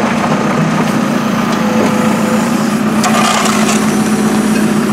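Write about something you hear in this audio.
Dirt and rocks thud into a truck bed.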